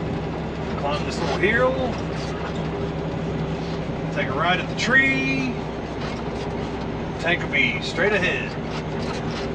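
A man talks briefly in short bursts, close by.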